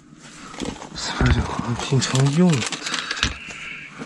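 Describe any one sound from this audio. Hands rummage through a bag, rustling fabric.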